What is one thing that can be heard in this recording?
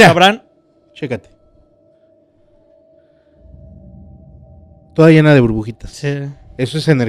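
A man speaks loudly with animation into a close microphone.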